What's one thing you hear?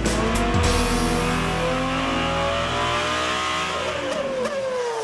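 A racing engine roars at high revs.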